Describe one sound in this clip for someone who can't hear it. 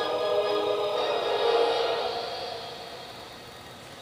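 Music plays through a small tinny speaker and fades away.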